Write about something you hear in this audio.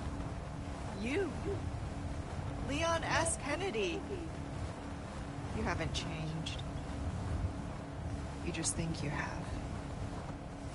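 A woman speaks softly and teasingly.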